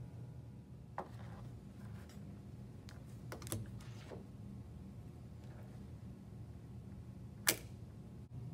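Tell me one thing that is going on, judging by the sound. Wooden sticks click and tap together.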